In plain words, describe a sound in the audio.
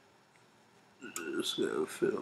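Guitar strings are plucked briefly.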